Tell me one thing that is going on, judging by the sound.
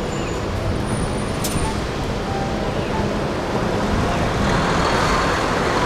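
A bus drives past close by with a rumbling engine.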